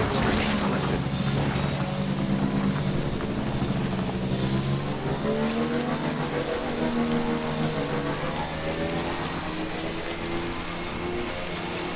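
Tyres rumble over bumpy grass.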